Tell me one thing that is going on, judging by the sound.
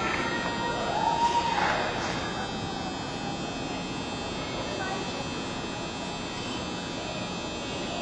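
Roller skate wheels roll and rumble across a hard floor in a large echoing hall.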